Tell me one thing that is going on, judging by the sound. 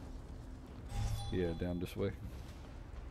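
A magic spell crackles and hums with a rising glide.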